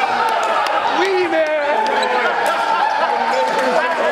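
Young men laugh loudly.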